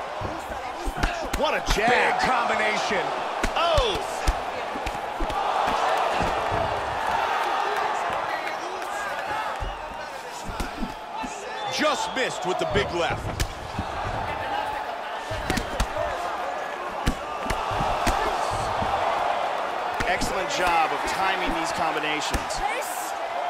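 Punches and kicks land with dull thuds.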